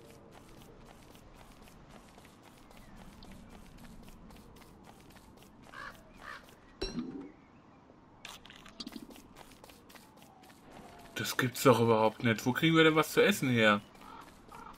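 Footsteps patter softly on dry ground.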